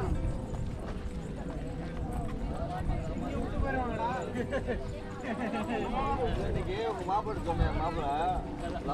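Footsteps shuffle on paving stones.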